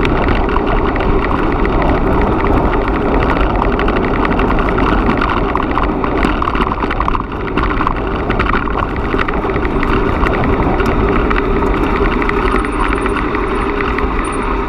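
Bicycle tyres crunch and rattle over a gravel track.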